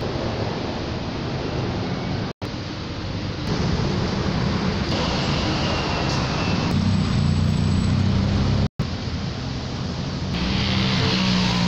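City traffic rumbles below.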